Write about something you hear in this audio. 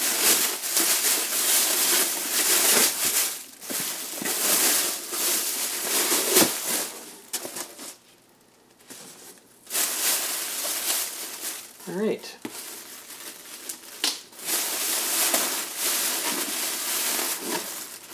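A plastic bag crinkles and rustles close by as hands pull at it.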